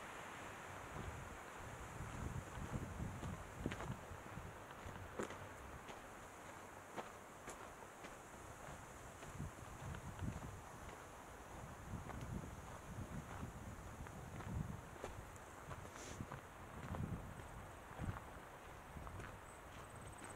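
Wind rumbles in gusts outdoors.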